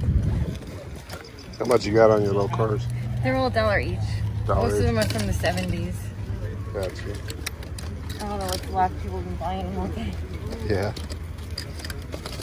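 Small metal toy cars clink and rattle as a hand sorts through them.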